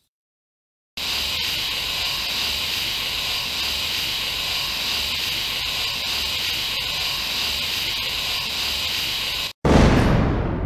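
Gas hisses steadily from stink bombs.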